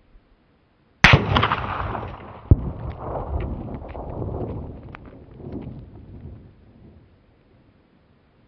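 A gunshot cracks loudly outdoors and echoes away.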